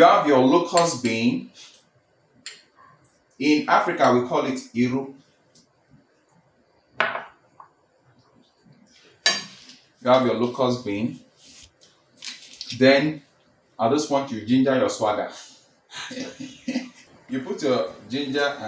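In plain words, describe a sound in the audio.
Food slides from a bowl into a pot of stew.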